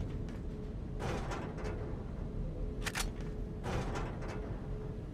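A metal locker door creaks and clanks open.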